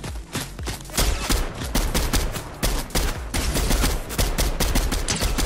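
A rifle fires rapid shots in short bursts.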